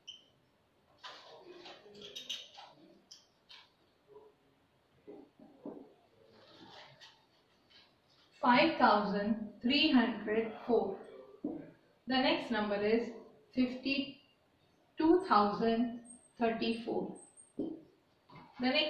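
A woman speaks calmly and clearly, as if teaching, close by.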